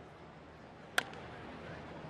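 A bat cracks against a ball.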